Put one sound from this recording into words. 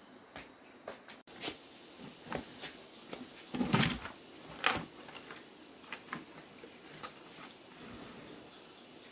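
A wood fire crackles and pops close by.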